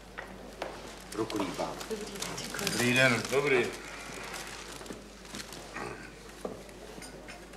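A man speaks loudly with animation nearby.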